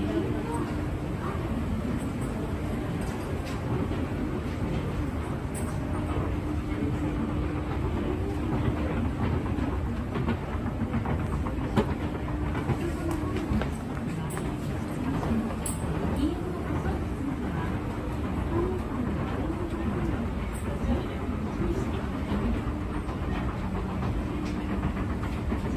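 An escalator hums and rumbles as it runs.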